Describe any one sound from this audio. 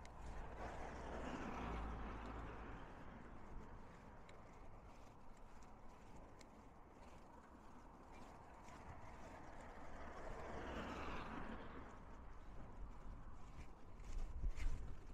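Wind blows into the microphone in gusts.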